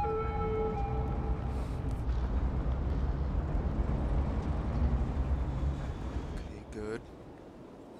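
City traffic rumbles with a low, steady hum, then drops away.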